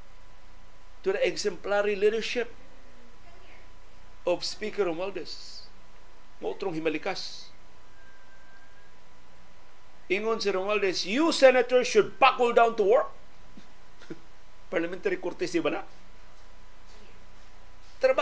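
A middle-aged man speaks calmly into a close microphone, in short bursts with pauses.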